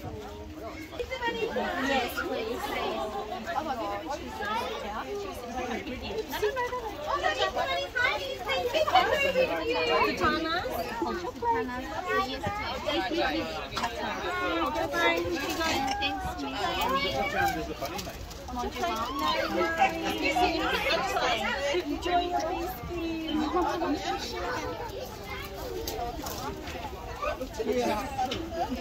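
A woman talks cheerfully with the children.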